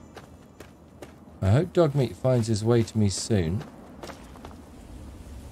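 Footsteps crunch on gravel and stones.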